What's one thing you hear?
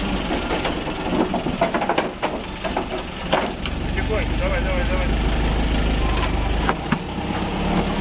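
Wooden planks and metal clatter under heavy tyres.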